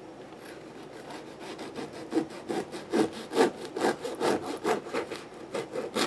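A knife saws through a crusty loaf.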